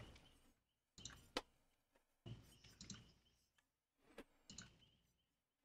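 Soft interface clicks sound as selections change.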